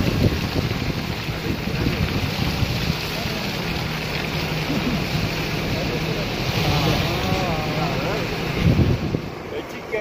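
A car engine hums steadily while driving slowly.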